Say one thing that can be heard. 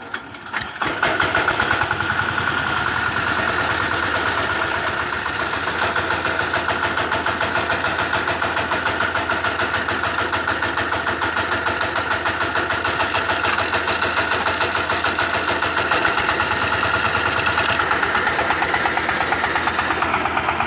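A single-cylinder diesel power tiller engine starts and chugs at a steady, rapid beat.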